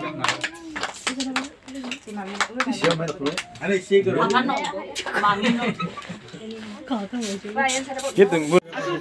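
A woman talks close by.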